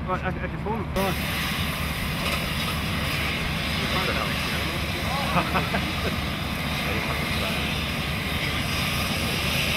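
A cutting torch hisses steadily as it cuts through metal.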